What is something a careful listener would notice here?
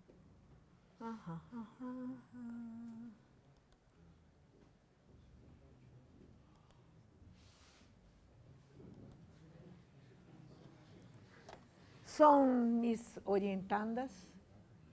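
A woman speaks into a microphone.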